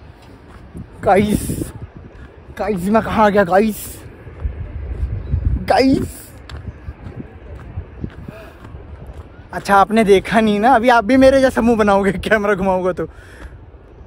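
A young man speaks with animation close to the microphone, outdoors.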